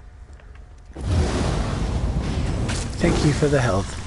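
A burst of fire roars and crackles.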